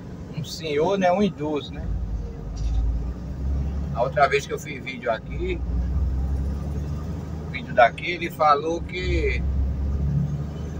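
A car engine rumbles steadily from inside while driving.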